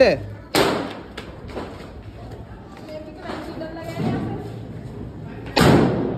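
A firecracker fizzes and hisses as it sparks.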